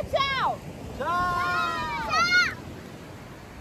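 A man shouts excitedly.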